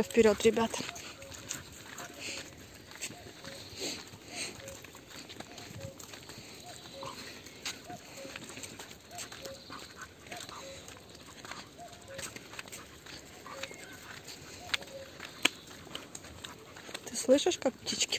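Footsteps crunch steadily along a dirt path.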